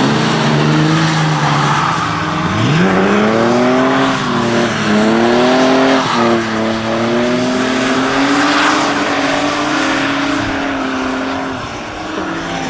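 Car engines roar and rev as cars race by.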